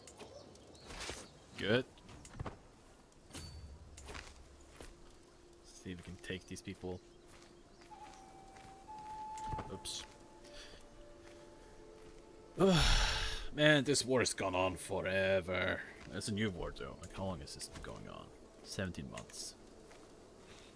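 A young man talks calmly into a microphone close by.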